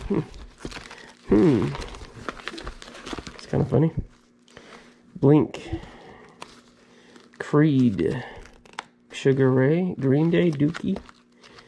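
Plastic disc sleeves rustle and flap.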